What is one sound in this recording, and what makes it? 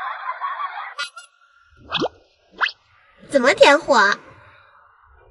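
A young woman speaks playfully, close by.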